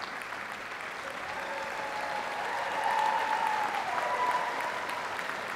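A crowd of young people cheers and whoops.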